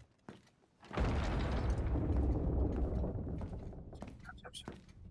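Heavy doors rumble open.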